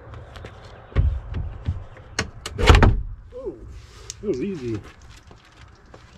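A car door panel rattles and thuds as it is pulled loose.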